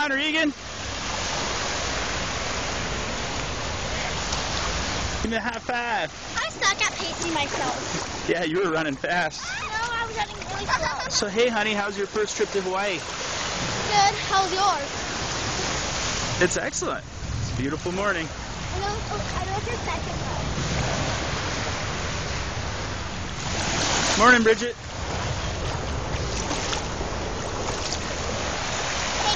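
Small waves wash gently onto the sand.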